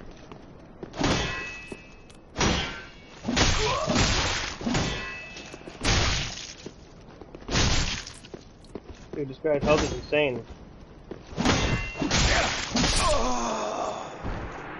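Swords clash and strike armour in sharp, heavy blows.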